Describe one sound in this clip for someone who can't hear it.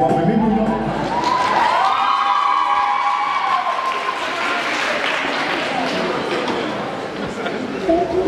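Loud music plays through loudspeakers in a large echoing hall.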